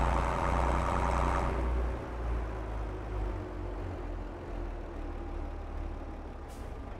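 A tractor engine rumbles steadily as it works the soil.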